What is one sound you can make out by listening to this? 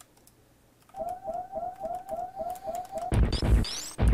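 Quick electronic blips repeat rapidly as a game character shoots.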